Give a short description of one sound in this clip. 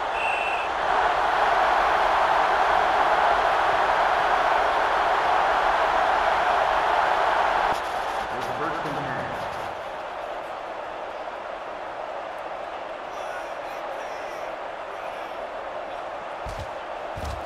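A large stadium crowd roars loudly, then quiets to a steady murmur.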